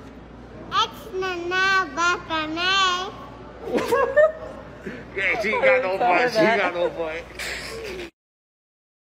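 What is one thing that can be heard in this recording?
A young girl speaks and squeals in a high voice.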